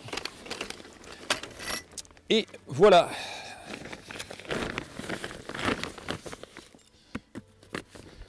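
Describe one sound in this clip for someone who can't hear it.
Plastic sheeting rustles and crinkles.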